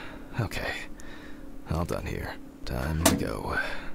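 A letter slides into a metal mailbox with a soft thud.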